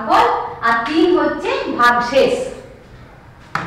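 A woman speaks clearly into a close microphone, explaining.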